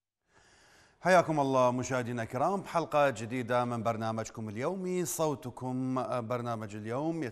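A man speaks calmly into a studio microphone.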